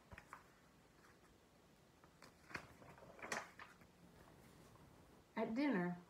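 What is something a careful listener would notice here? Pages of a book rustle as they turn.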